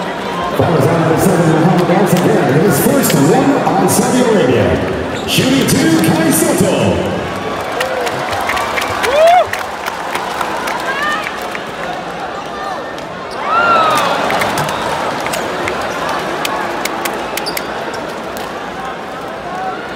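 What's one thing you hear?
A large crowd cheers and chants loudly in a big echoing arena.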